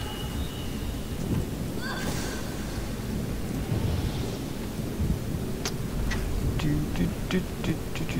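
A young man talks calmly into a nearby microphone.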